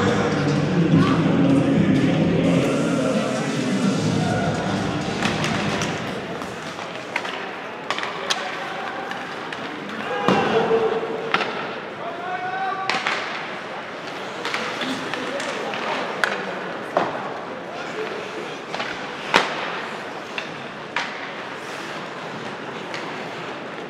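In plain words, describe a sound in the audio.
A crowd of spectators murmurs and calls out in a large echoing arena.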